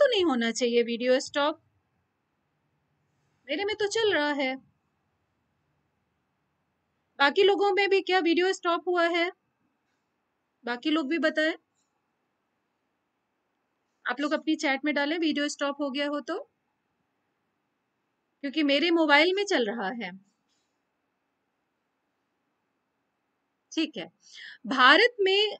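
A middle-aged woman speaks calmly into a microphone in short phrases with pauses.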